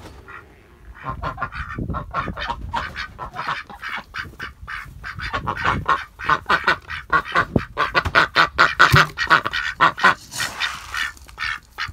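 Several ducks quack loudly and rapidly close by.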